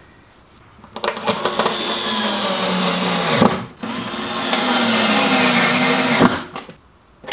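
A cordless drill whirs in bursts, driving screws into wood.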